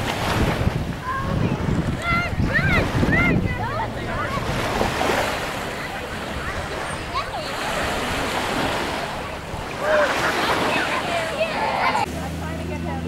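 Children shout and squeal playfully nearby in the water.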